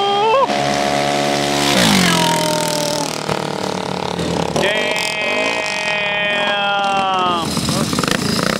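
Motorcycle engines scream at high revs close by, then drop in pitch as they pass.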